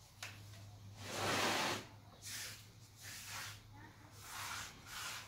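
Hands brush and rub against a clay flower pot.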